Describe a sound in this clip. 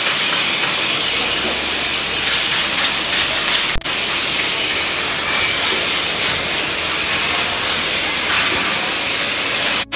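An electric welder crackles and hisses steadily.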